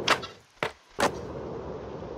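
A skateboard lands on concrete with a clack.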